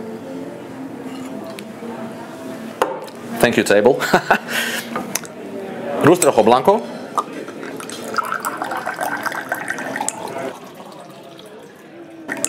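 Liquid pours and splashes into a glass.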